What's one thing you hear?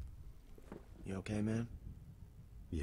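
A man asks a question in a low, concerned voice.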